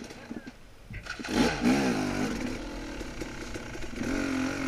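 A motorcycle engine roars steadily as the bike rides off.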